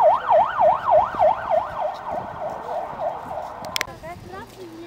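An ambulance siren wails in a fast up-and-down warble.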